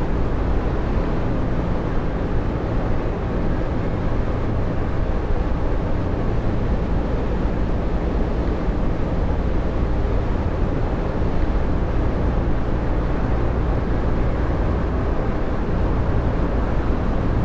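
A bus engine hums steadily at cruising speed.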